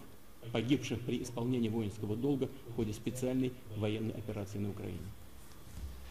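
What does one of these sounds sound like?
A man speaks steadily and formally, heard through a loudspeaker recording.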